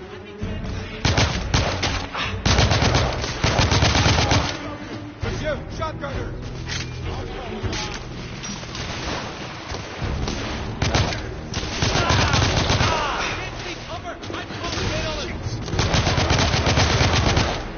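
Rapid gunfire bursts loudly and echoes.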